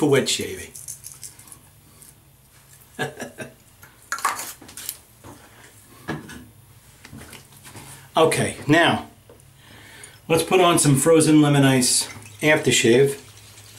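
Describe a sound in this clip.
An older man talks close by, in bursts with pauses.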